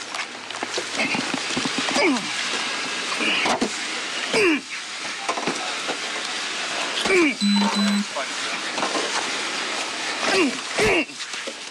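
Fists thump repeatedly against a body.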